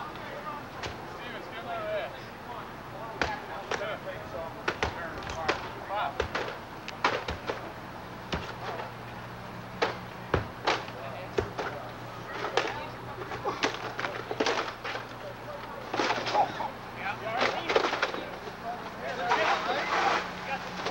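Men call out to each other at a distance, outdoors.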